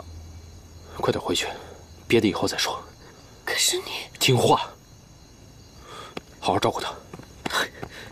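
A man speaks firmly and urgently nearby.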